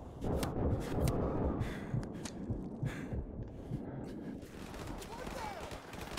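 Gunfire and explosions from a video game boom in quick bursts.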